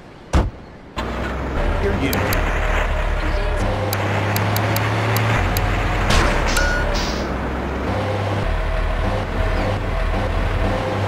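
A truck engine rumbles low and steadily.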